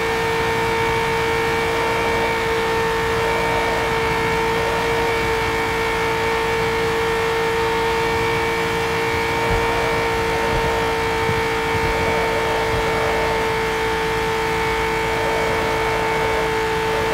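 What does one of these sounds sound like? A racing car engine drones steadily at high speed.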